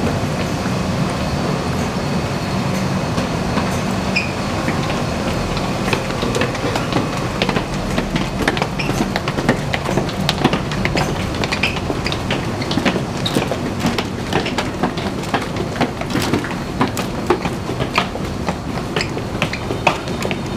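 Footsteps tap and scuff on a hard floor and stairs in a crowd.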